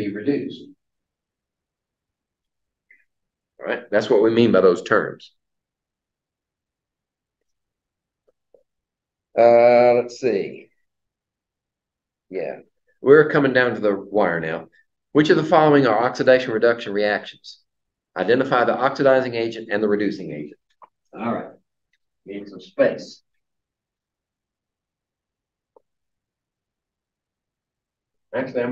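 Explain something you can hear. An older man lectures calmly, speaking in bursts with pauses.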